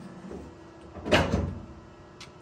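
A machine's cover thuds shut.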